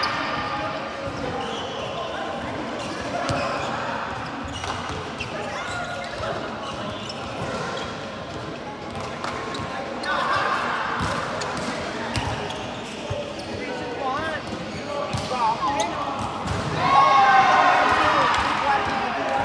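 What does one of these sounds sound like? Young men and women chatter and call out in a large echoing hall.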